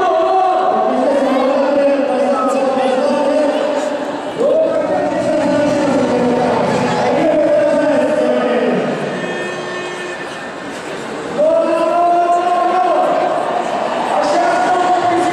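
A large crowd chants and sings loudly in an echoing arena.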